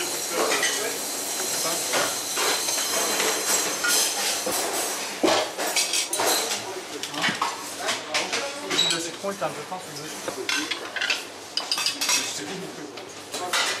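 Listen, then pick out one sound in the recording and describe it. Metal trays and dishes clink and clatter.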